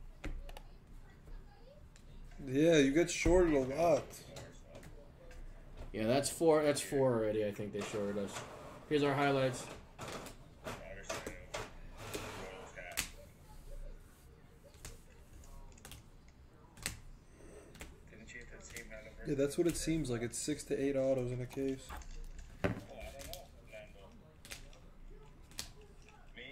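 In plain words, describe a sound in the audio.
Plastic card cases click and clack as they are handled.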